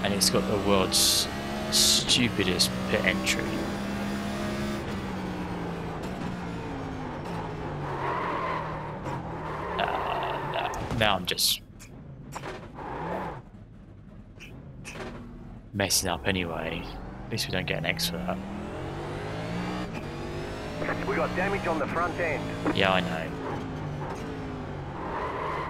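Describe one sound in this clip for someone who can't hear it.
A racing car engine roars, revving up and dropping with each gear change.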